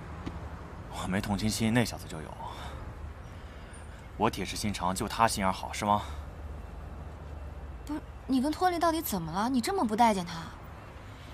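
A young woman speaks calmly and coldly, close by.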